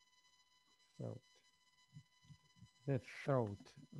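A voice speaks briefly over an online call.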